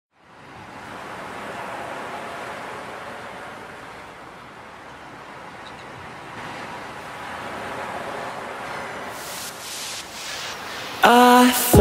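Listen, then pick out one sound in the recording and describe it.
Sea waves churn and wash over rocks.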